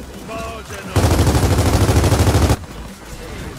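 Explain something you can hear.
A rifle fires in a rapid automatic burst.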